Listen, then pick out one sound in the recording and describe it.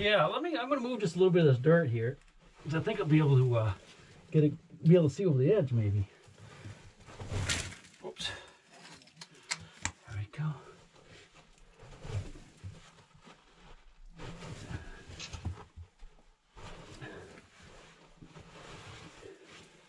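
Rock and grit scrape and crunch under a man's hands and clothes as he crawls.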